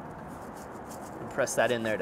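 Seasoning rattles softly from a shaker.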